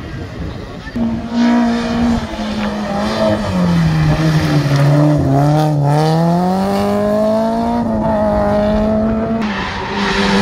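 A rally car revs hard, slowing and accelerating through a hairpin.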